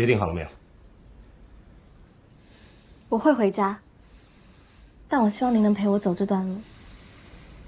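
A young woman speaks softly and earnestly, close by.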